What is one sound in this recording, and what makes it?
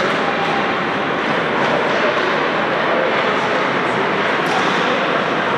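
Hockey sticks tap and click against pucks in a large echoing rink.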